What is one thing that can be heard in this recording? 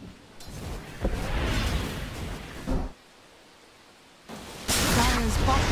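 Spells burst with loud magical blasts.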